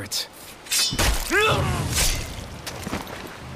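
A knife stabs into a body with a heavy thud.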